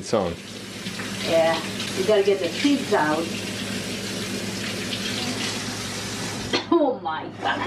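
Water runs from a tap.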